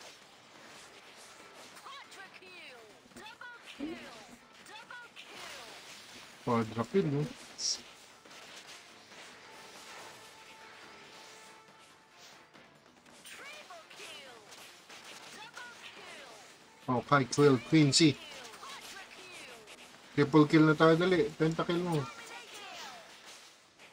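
Magic spells burst and whoosh in a busy battle.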